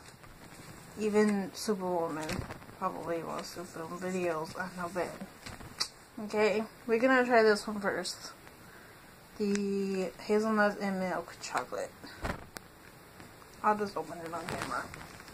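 A young woman speaks close by, in short phrases.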